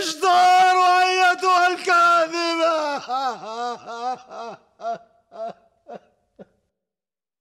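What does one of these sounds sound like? A man cries out in a long, wavering wail that breaks off.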